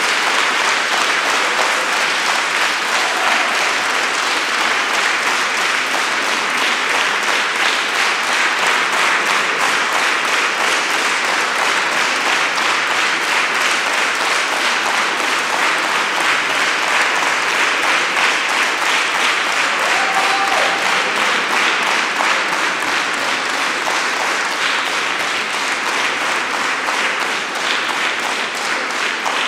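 A large crowd applauds loudly in an echoing hall.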